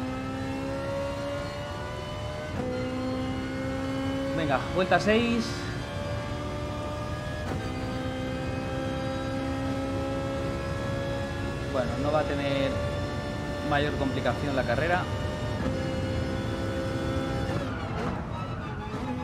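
A racing car engine drones at high revs and climbs in pitch through each gear, with brief drops at the gear changes.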